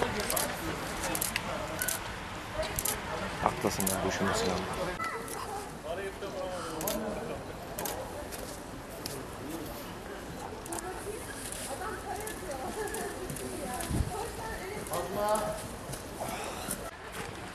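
A man talks loudly outdoors.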